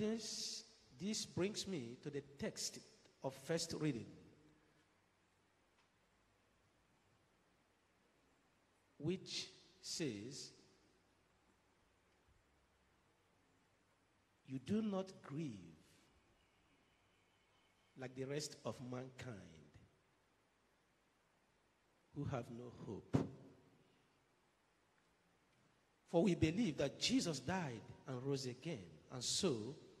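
A man speaks calmly into a microphone, reading out in short phrases with pauses.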